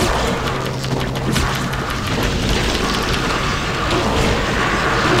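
Electric crackling and blasts of a strategy video game battle fill the sound.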